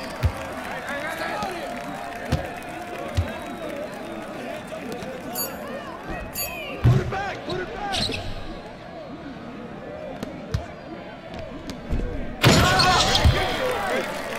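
A basketball bounces with dull thumps on a hardwood court.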